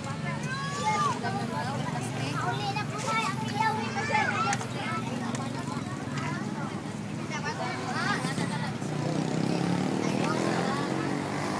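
A crowd of children chatter and shout nearby, outdoors.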